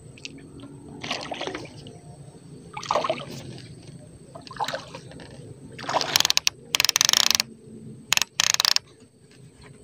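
A fishing reel whirs and clicks as its handle is wound.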